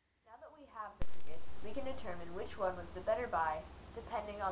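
A young boy talks calmly indoors, close by.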